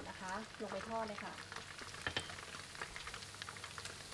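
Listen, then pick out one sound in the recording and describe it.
Leaves hiss sharply as they drop into hot oil.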